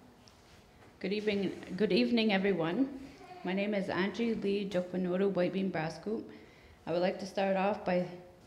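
A woman speaks steadily at a distance in an echoing room.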